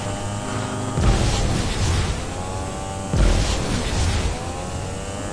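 Loud blasts burst and rumble.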